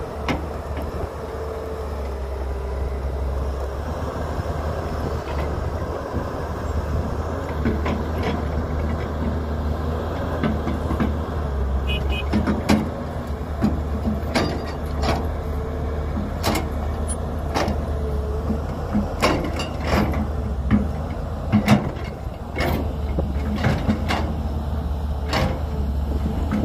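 An excavator's diesel engine rumbles steadily nearby.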